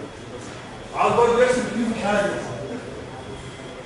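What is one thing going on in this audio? A man speaks briefly.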